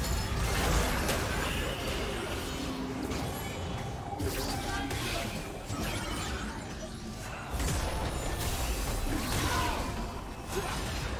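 Game spell effects whoosh and crackle in quick bursts.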